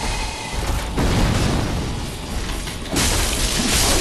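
A large metal shield strikes with a loud clang.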